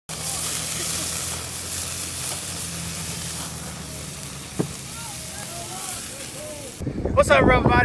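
Burgers sizzle on a grill.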